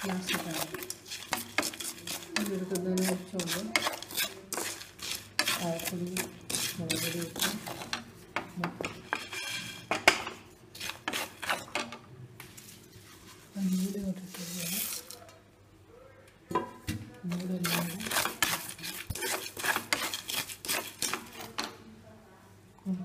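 A wooden spatula stirs dry whole spices in a metal pan.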